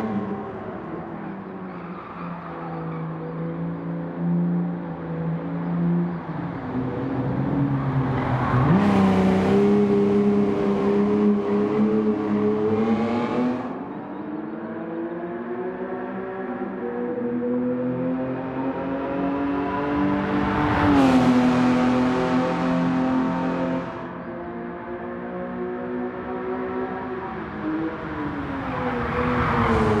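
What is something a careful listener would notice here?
A sports car engine revs hard, rising and falling in pitch as the gears change.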